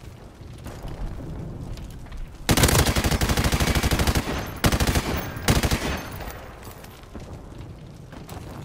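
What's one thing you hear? Explosions rumble and crackle with fire.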